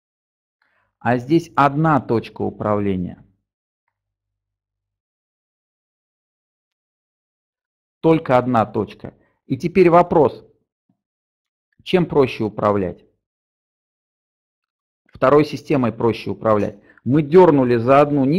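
A middle-aged man speaks calmly through a headset microphone, in pauses, as if over an online call.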